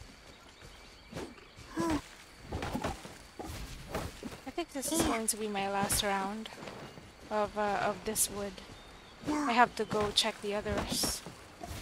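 Sharp impacts thud against wood.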